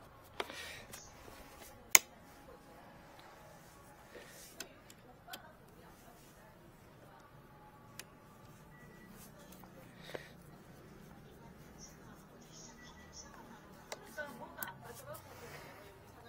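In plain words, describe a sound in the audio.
Metal parts of a rod scrape and clink as they are screwed together.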